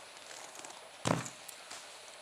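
A heavy metal object thuds onto a wooden floor.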